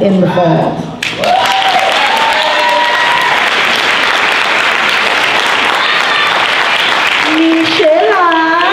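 Young girls clap their hands.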